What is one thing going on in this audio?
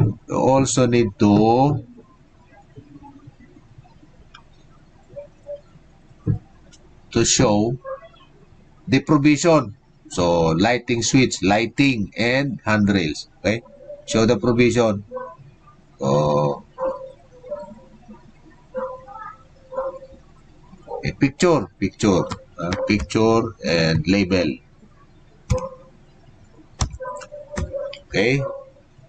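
A man lectures calmly into a microphone over an online call, with pauses.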